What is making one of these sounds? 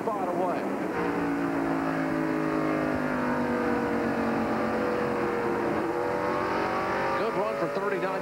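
A race car engine drones loudly from inside the car, rising and falling in pitch.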